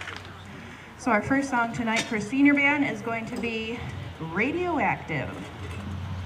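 A woman speaks calmly through a loudspeaker outdoors.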